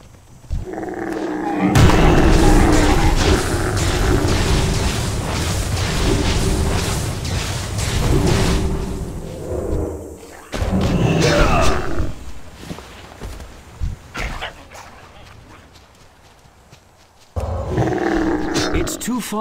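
Weapon blows strike a large stag in a fight.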